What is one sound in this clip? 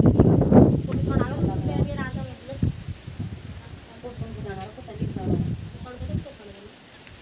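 Women chat casually nearby.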